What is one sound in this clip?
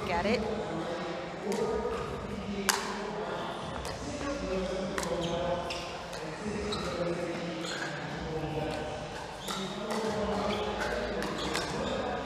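Paddles strike a plastic ball with sharp hollow pops during a rally.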